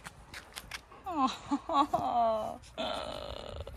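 A dog whines and yelps excitedly.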